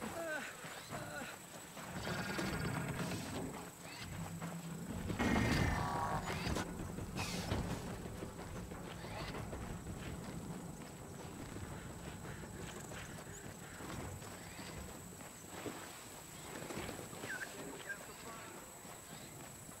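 Footsteps crunch over gravel and snow.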